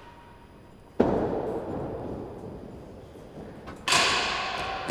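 A racket strikes a ball with a sharp crack that echoes around a large hall.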